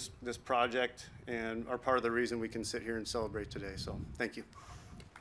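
A man speaks through a microphone outdoors.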